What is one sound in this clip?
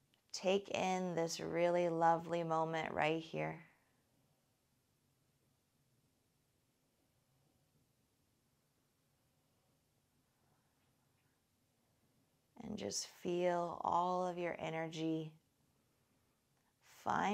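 A woman speaks softly and calmly, with long pauses, close to a microphone.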